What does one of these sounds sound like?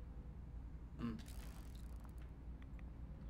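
A pistol is drawn with a metallic clack.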